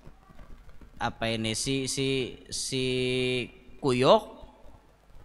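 A young man chants in a melodic, drawn-out voice close to a microphone, with a slight echo.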